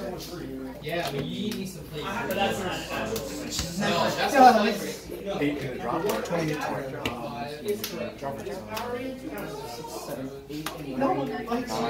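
Playing cards slide and tap on a tabletop.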